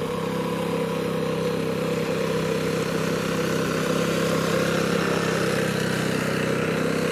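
A small engine chugs loudly and steadily close by.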